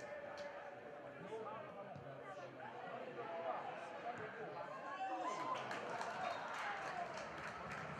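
Players shout across an open pitch.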